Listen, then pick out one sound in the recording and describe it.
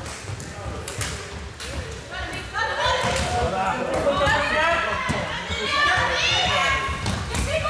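Sticks knock sharply against a ball and the floor.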